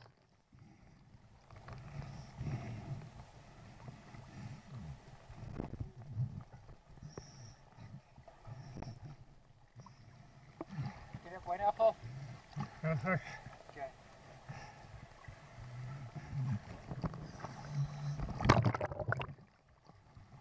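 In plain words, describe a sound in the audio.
Water sloshes and splashes close by at the surface.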